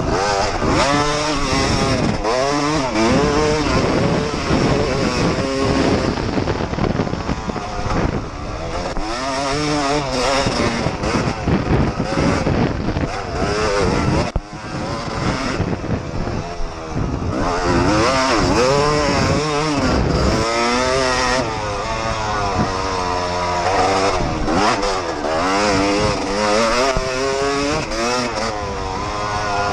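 A dirt bike engine roars up close, revving up and down as the bike speeds along.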